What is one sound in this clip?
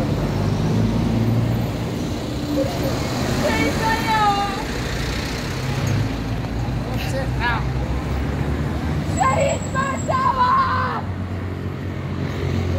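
Traffic rumbles steadily on a road close by.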